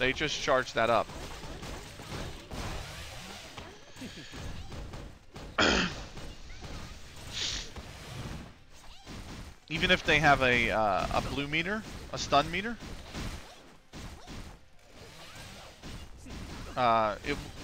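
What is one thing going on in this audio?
Video game fight sounds clash and whoosh.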